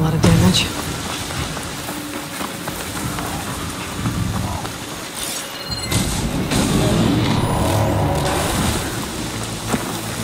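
Rain falls steadily on leaves.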